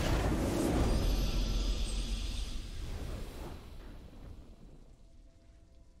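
A triumphant game fanfare swells loudly and then fades away.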